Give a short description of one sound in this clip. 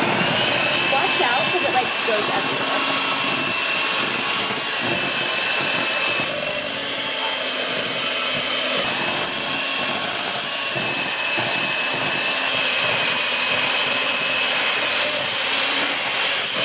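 Mixer beaters rattle and scrape against a glass bowl.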